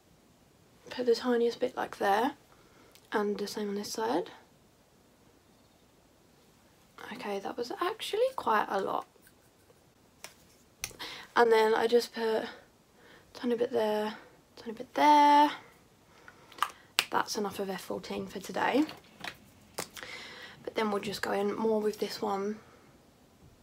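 A young woman talks calmly and close by, in short bursts with pauses.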